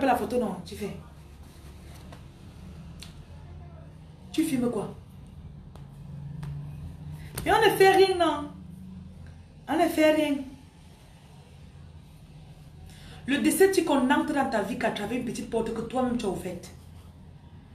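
A young woman speaks close to a microphone in short, expressive bursts with pauses.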